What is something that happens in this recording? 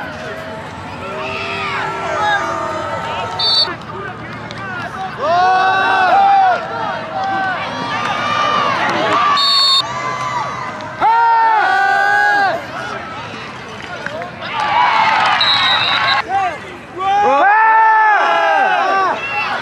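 A crowd cheers and shouts in the stands outdoors.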